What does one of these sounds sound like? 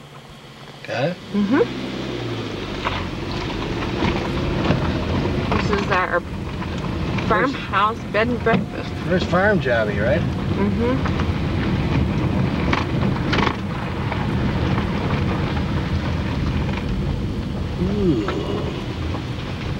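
Tyres roll over a rough lane.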